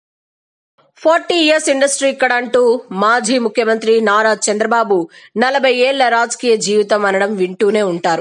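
An elderly man speaks forcefully into a microphone over a loudspeaker.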